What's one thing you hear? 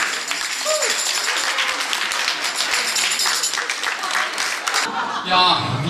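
A group of women laugh and cheer close by.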